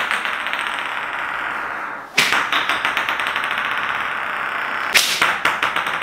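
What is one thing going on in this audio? A spinning top whirs on a hard floor.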